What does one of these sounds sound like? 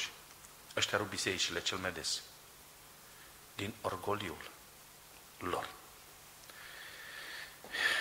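A middle-aged man speaks with emphasis into a microphone, in short bursts with pauses.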